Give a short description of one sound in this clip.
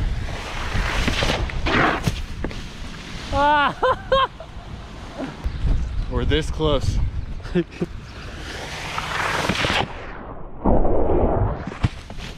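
A wakeboard skims across water with a hissing spray.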